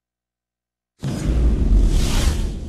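A loud rumbling intro with music bursts in at the end.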